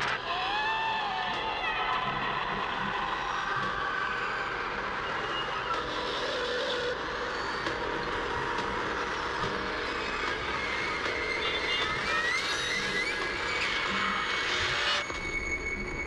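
A television crackles with loud, warbling static and distorted noise.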